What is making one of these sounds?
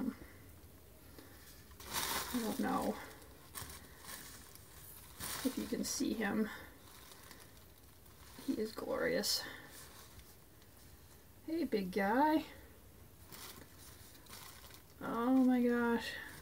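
Bubble wrap crinkles as hands handle it.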